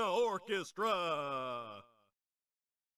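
A man speaks in a low, theatrical voice.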